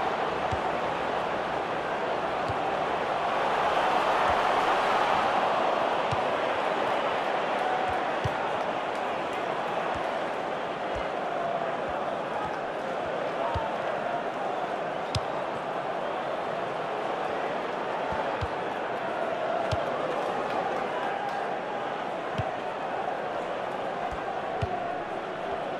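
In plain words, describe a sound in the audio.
A ball is kicked with dull thuds now and then.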